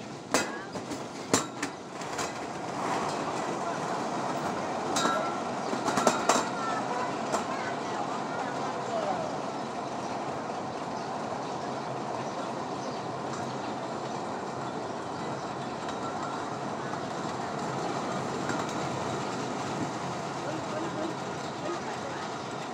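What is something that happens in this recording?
Metal rollers rumble and rattle steadily as a person slides down a long roller slide.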